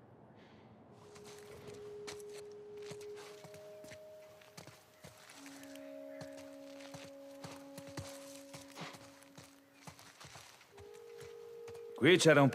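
Footsteps crunch over dry leaves and grit.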